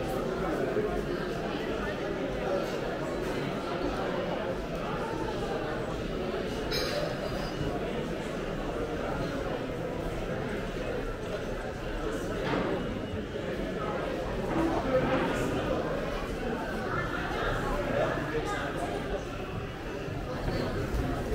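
A crowd murmurs and chatters in an echoing indoor hall.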